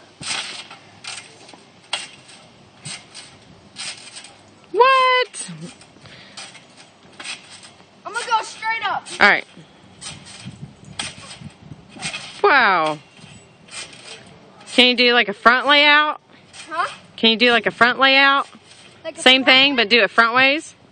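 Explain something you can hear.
A trampoline's springs creak and squeak as a boy bounces on it.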